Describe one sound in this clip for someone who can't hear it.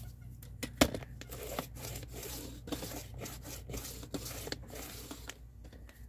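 A paper trimmer blade slides along its rail.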